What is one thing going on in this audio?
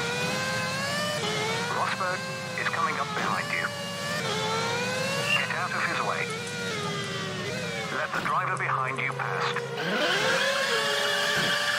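A young man talks into a microphone now and then.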